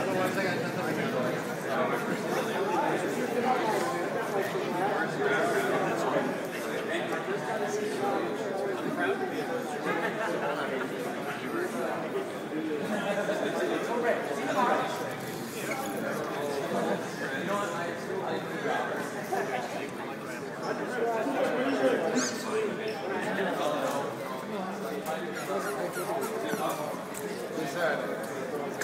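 Several people chatter nearby in a large echoing room.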